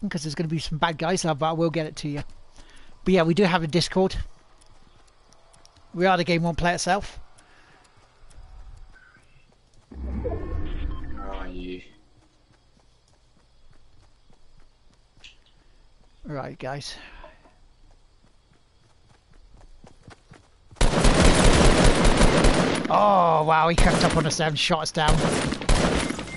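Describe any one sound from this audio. A man speaks into a microphone in short bursts, with animation.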